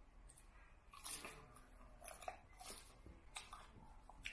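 A young woman chews and crunches crisp lettuce.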